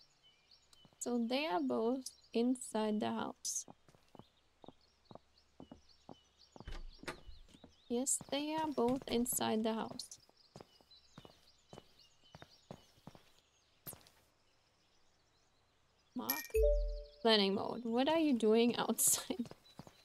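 A young woman talks into a microphone in bursts.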